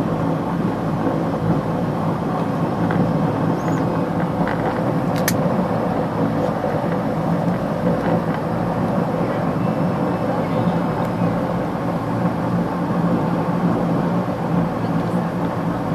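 A small plane's propeller engine drones steadily and loudly from close by.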